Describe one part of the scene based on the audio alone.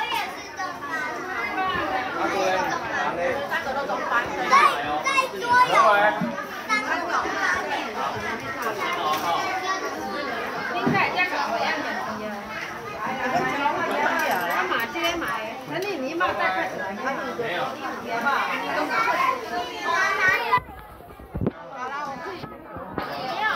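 A crowd of adults and young children talk over each other.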